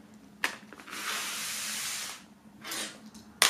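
A cord slides across a wooden table.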